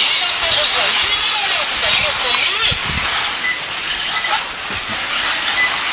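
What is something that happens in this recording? Tyres of model cars skid and crunch on packed dirt.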